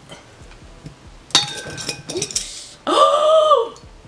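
A cork pops out of a bottle.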